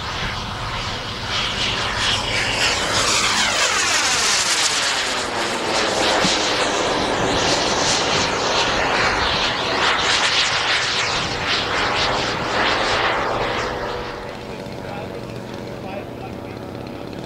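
A jet engine roars loudly overhead, its pitch sweeping as the jet passes.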